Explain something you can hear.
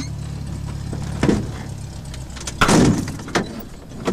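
A small aircraft door swings shut with a thud.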